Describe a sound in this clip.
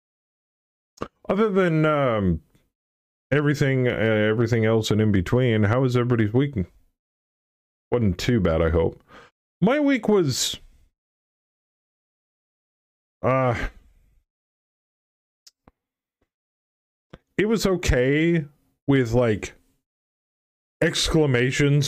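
A middle-aged man talks with animation into a close microphone, in bursts with pauses.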